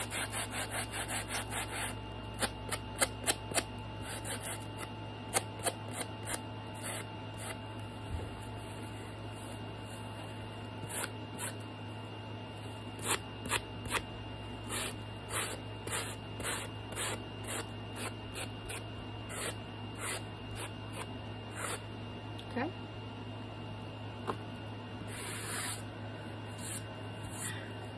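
A sanding block rasps in short strokes against the edge of card.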